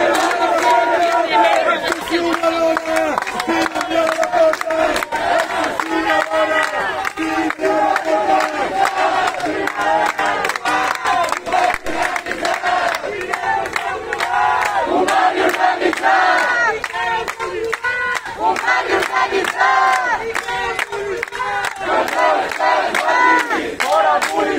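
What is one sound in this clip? A crowd of people chants and shouts loudly outdoors.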